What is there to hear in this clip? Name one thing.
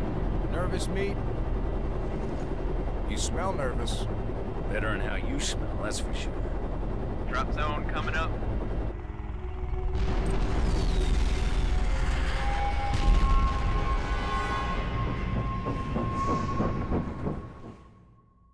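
A helicopter engine drones steadily.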